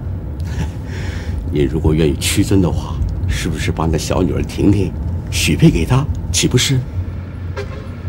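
A middle-aged man speaks.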